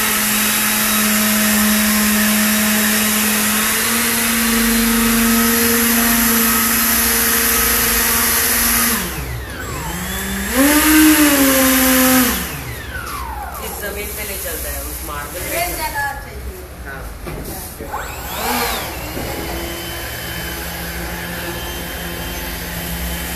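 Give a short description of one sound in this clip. A small electric fan motor whirs with a steady hum, its pitch sweeping down and back up partway through.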